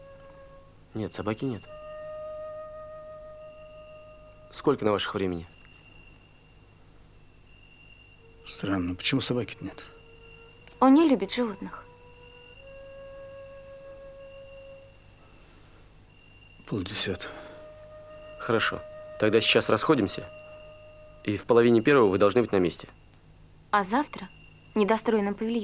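A young man speaks calmly and quietly, close by.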